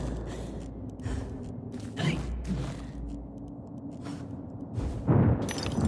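A magical burst whooshes and sparkles.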